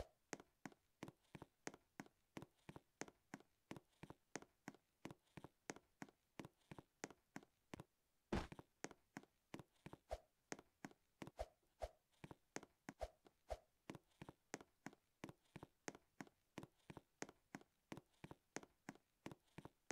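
Quick, even footsteps patter on a hard floor.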